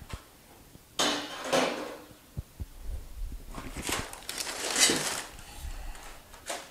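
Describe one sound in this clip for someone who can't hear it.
A metal tool clanks against metal.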